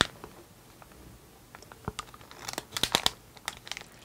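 Sauce squeezes out of a packet with soft squelching.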